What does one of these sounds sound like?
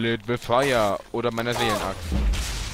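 A heavy weapon strikes a creature with a thud.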